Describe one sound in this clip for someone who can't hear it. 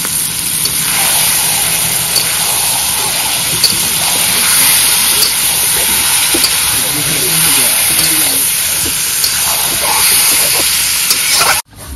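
A spatula scrapes against a metal pan.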